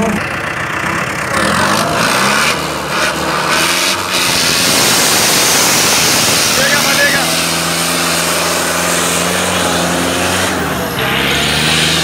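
A tractor engine rumbles and revs nearby.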